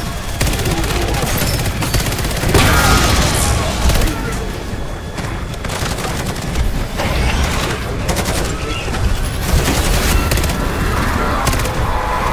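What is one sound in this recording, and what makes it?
A laser weapon hums and crackles.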